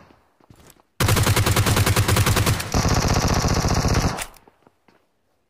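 Rapid automatic gunfire rattles loudly in two long bursts.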